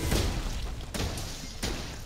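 A burst of sparks explodes with a loud crack.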